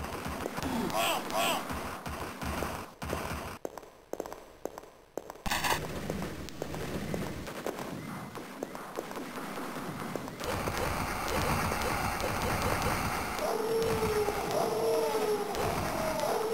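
A gun fires rapid shots.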